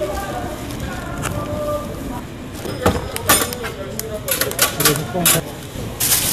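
Plastic film crinkles.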